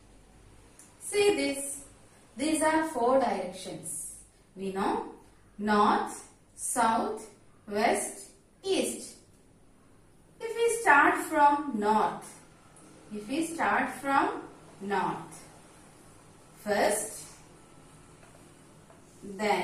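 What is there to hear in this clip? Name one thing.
A woman speaks calmly and clearly nearby, explaining.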